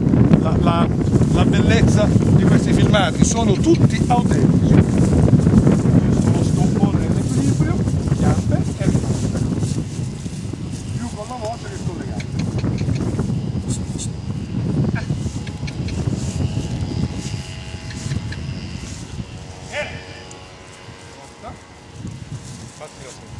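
A horse's hooves thud softly on grass.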